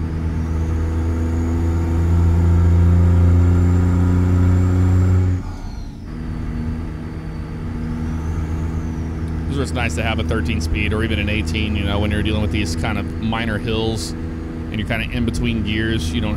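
A truck engine drones steadily while driving, dropping in loudness partway through.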